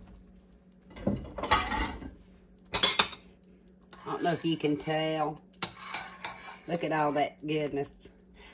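A metal spoon stirs and clinks in a pot of liquid.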